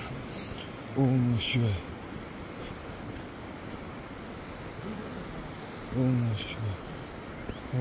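A man speaks in short bursts close by.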